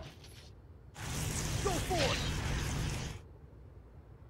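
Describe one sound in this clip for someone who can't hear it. A monster lets out a loud, rasping roar.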